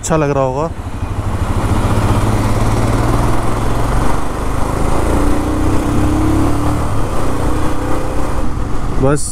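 Wind rushes past as a motorcycle rides along.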